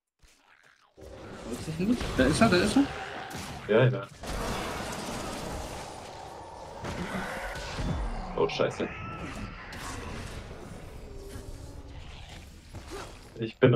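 Magic blasts crackle and boom in a fast fight.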